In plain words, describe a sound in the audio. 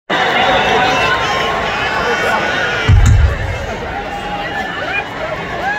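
A rock band plays loudly on a distant stage, heard echoing across a large open venue.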